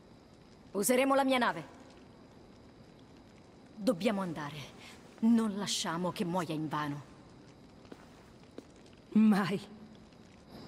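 A young woman speaks calmly and firmly.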